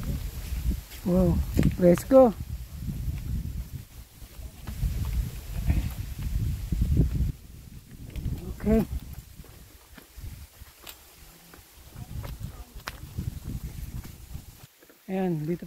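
Footsteps crunch on dry leaves and earth.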